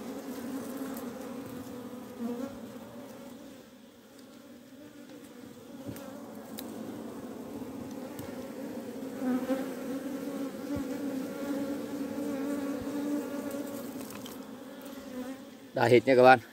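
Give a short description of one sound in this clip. A swarm of bees buzzes steadily close by.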